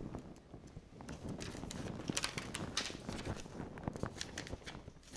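Paper rustles as it is moved by hand.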